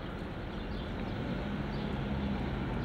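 A tram rumbles along a street.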